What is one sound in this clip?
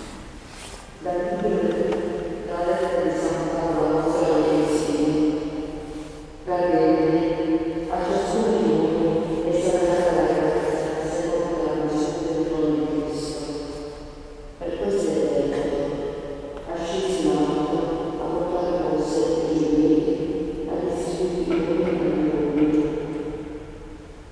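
A woman sings slowly through a microphone in a large echoing hall.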